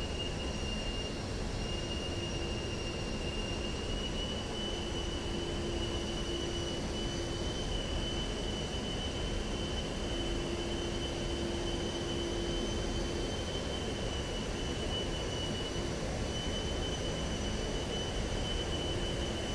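A jet engine roars steadily with a high whine.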